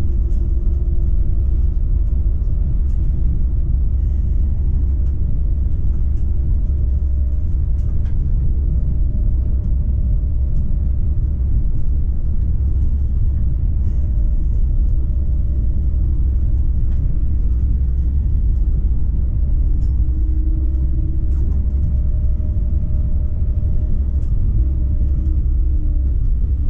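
A tram rumbles steadily along its rails with a deep hum.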